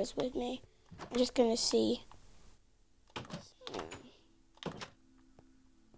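A wooden door clacks open and shut.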